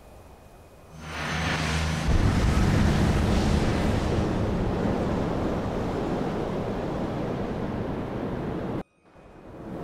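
A deep rushing roar swells and holds steady, then cuts off sharply.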